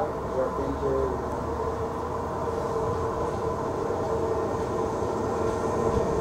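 A train rumbles along the tracks as it slowly approaches.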